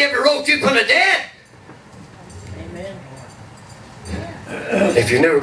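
An elderly man speaks into a microphone over a loudspeaker, with pauses.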